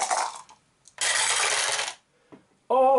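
Dice clatter as they are rolled into a plastic tray.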